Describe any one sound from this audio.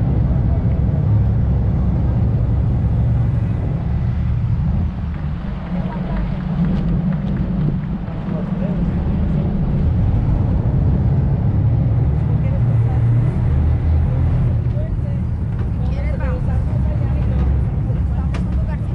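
A boat engine rumbles low and steadily.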